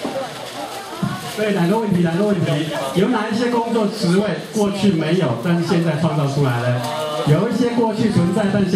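A man speaks animatedly through a microphone in a large echoing hall.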